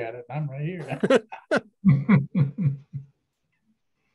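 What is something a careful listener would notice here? Men laugh over an online call.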